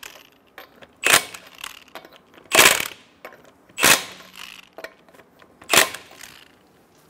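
An impact wrench rattles in short bursts.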